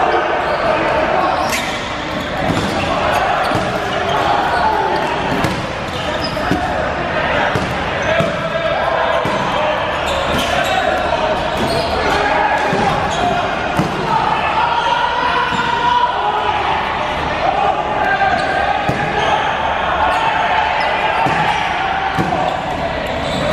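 A crowd of players and onlookers shouts and calls out in a large echoing gym.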